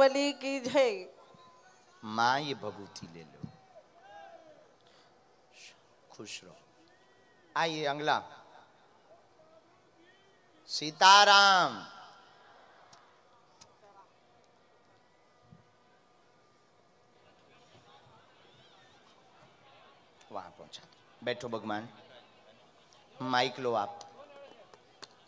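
A young man sings short phrases into a microphone, heard through loudspeakers.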